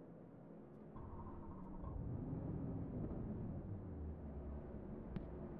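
A race car engine revs up into a deep rumble.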